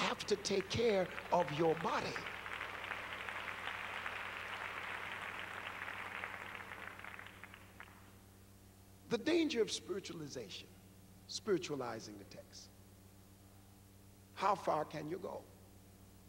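A man speaks with animation into a microphone in a large hall.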